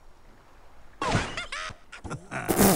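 A cartoon bird squawks as it flies through the air.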